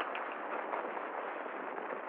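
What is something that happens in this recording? Fabric rustles as a sari is unfolded.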